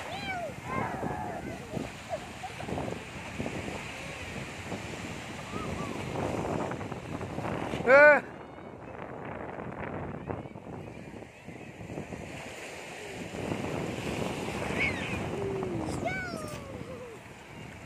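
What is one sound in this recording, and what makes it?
A young child squeals and shouts excitedly close by.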